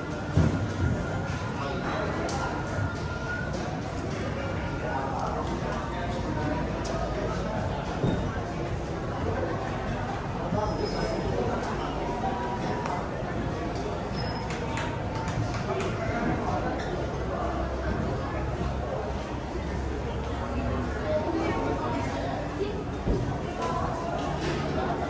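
Adult men and women chat at a distance, with a steady murmur of voices in a room.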